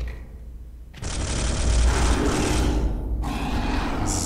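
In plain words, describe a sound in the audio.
A heavy gun fires a long rapid burst.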